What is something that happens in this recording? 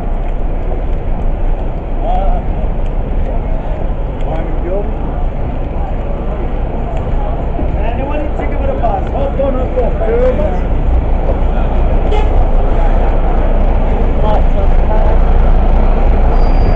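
Traffic rumbles low and steady nearby.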